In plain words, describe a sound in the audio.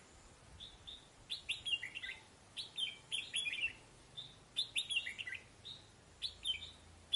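A songbird sings loud, clear whistling phrases close by.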